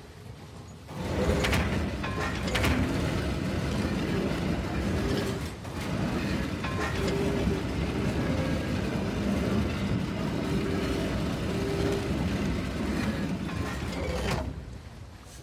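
A heavy stone mechanism grinds and rumbles as it turns.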